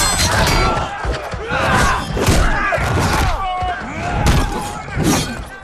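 Metal weapons clang together.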